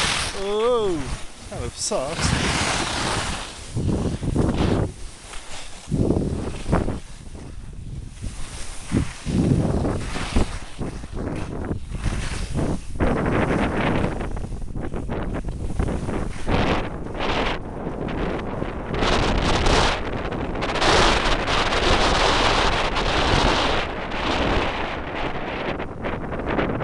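Wind rushes loudly past in gusts.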